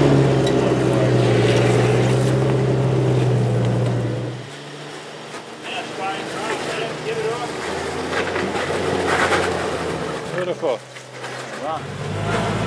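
An engine rumbles loudly as a vehicle crawls over rocks.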